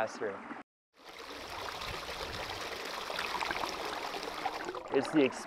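A shallow stream gurgles and trickles over rocks.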